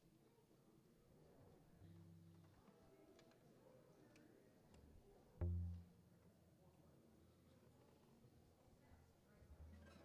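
Musicians shuffle about, with soft knocks and thumps from their instruments.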